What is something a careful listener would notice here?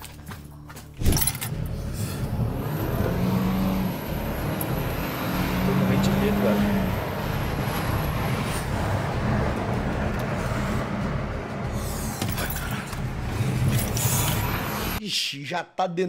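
A car engine hums and tyres roll along a road.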